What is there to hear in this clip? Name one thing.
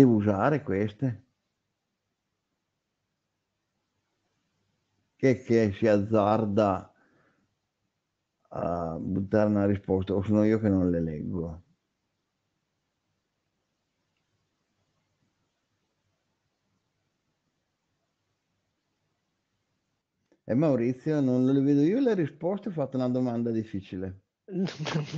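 A man speaks calmly through an online call, in short bursts with pauses.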